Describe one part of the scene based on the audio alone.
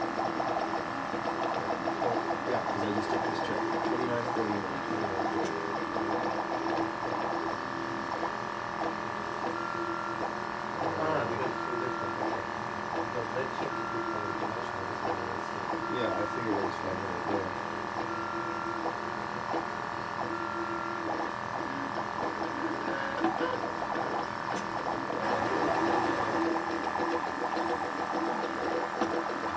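A cooling fan hums steadily.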